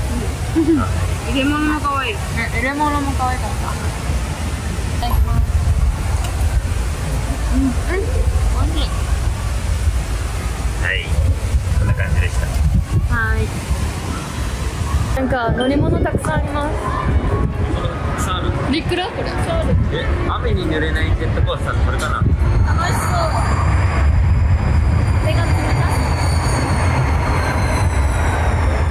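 Young women chat with animation close by.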